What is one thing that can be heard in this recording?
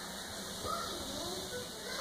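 A baby pats a tray with both hands.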